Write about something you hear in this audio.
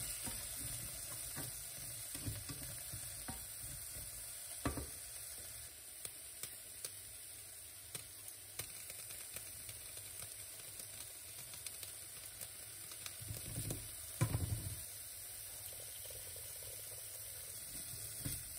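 A spatula scrapes and taps against a pan.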